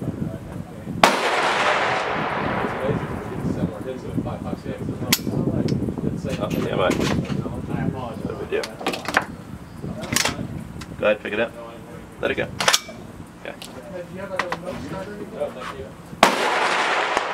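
A rifle fires two loud shots that echo across open ground.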